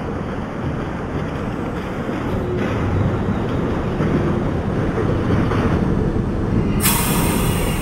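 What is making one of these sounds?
Another train passes close by with a rising roar.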